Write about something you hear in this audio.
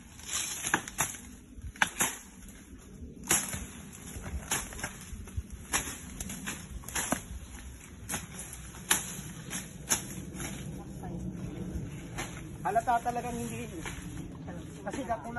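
Leaves and undergrowth rustle and crunch underfoot.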